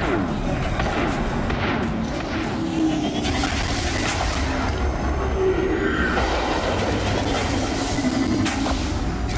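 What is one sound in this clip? A spaceship engine rumbles low and steadily.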